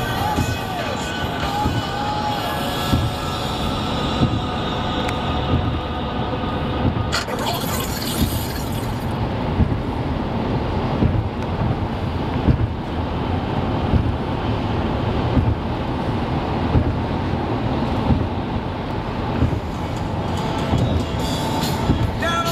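Tyres roar steadily on a road surface.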